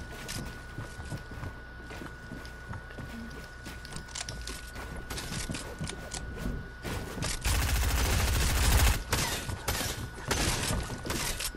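Footsteps patter on wooden floors.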